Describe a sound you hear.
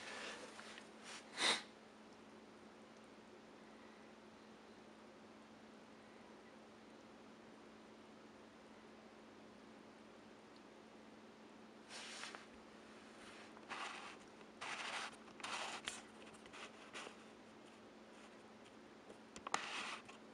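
A fermenting mash fizzes with small bubbles.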